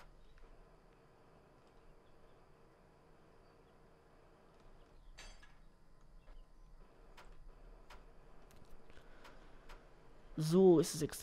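A crane motor hums steadily as a load is lifted and swung.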